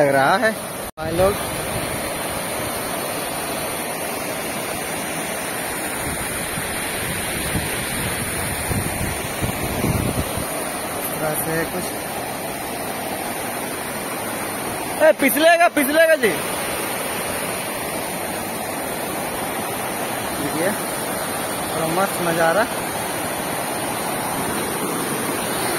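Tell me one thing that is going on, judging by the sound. A waterfall rushes steadily over rocks.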